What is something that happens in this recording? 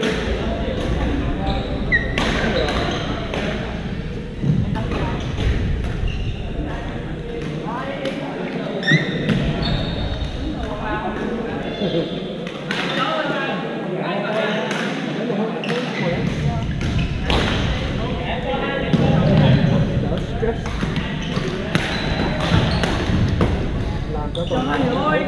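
Players call out to each other across the echoing hall.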